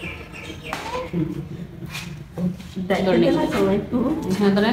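A woman talks softly and coos, close by.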